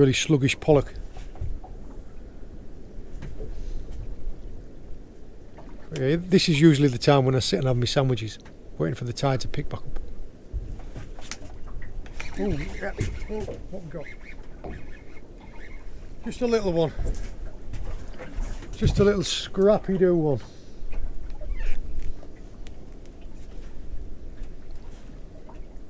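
Water laps against a small boat's hull.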